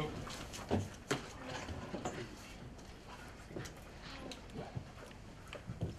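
Papers rustle on a table.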